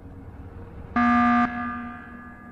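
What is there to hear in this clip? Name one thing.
An alarm blares loudly.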